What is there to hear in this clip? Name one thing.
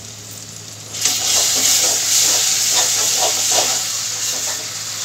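A spoon scrapes and clatters against a metal pan.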